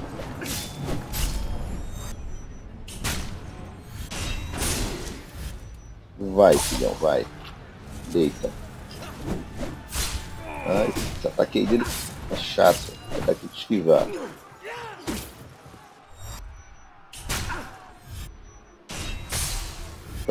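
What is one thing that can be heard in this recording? Swords clang and thud in hard, quick blows.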